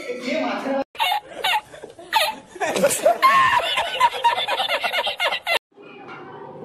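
An elderly man laughs heartily.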